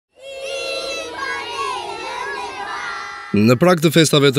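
A large group of children sings together outdoors.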